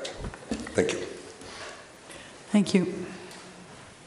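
An elderly man speaks briefly into a microphone in an echoing room.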